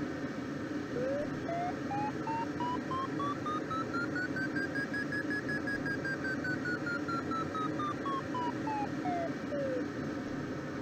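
A glider's variometer beeps rapidly, its pitch rising and then falling.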